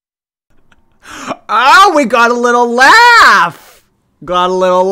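A young man speaks with exaggerated, sing-song animation close to a microphone.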